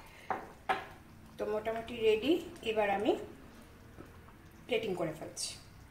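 A spatula stirs and scrapes thick food in a metal pan.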